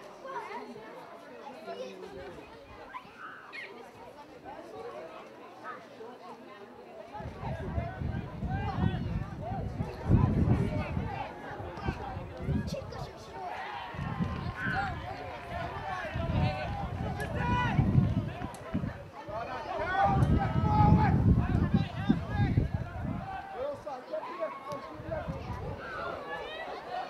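Men shout and call out across an open outdoor field.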